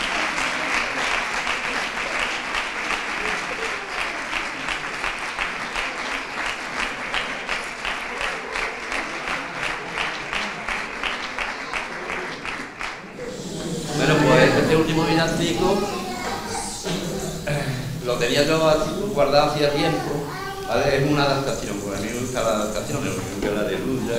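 A choir of men and women sings together in an echoing hall.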